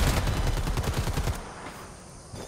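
A rifle fires in rapid bursts, close and loud.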